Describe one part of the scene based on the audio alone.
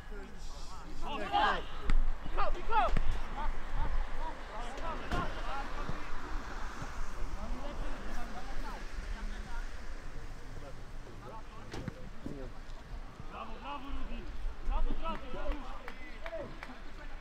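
Football players shout to each other across an open field.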